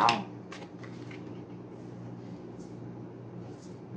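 A card is laid down on a table with a soft tap.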